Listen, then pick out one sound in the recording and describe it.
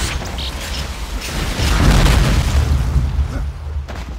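A rocket launcher fires with a whooshing blast.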